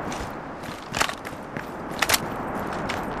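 A rifle magazine clicks out and snaps back in.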